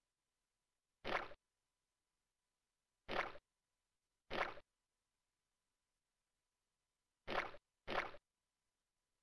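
A short whooshing game sound effect plays as a blob character jumps.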